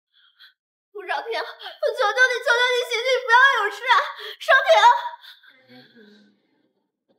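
A young woman pleads in a tearful, urgent voice close by.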